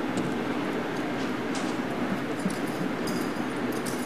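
Footsteps walk away on pavement.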